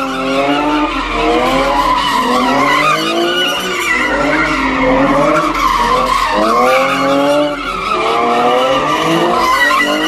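A car engine revs hard, rising and falling again and again.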